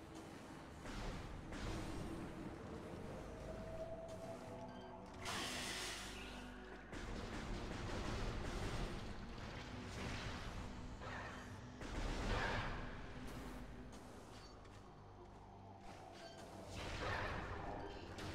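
A blaster fires in short, sharp bursts.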